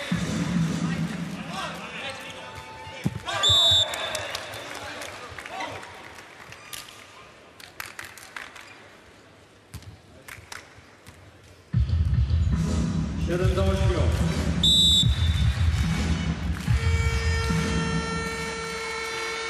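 A large crowd cheers and claps in a big echoing hall.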